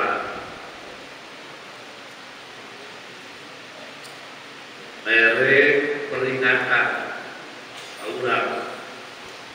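A man speaks calmly into a microphone, with pauses, in a reverberant hall.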